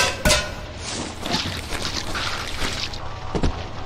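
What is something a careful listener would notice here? A wet mop scrubs and swishes across a hard floor.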